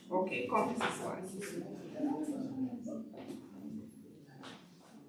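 A woman speaks calmly through a microphone.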